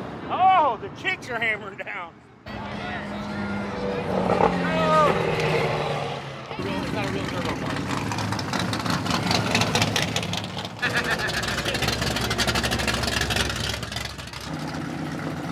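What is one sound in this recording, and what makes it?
Cars drive slowly past with deep rumbling engines.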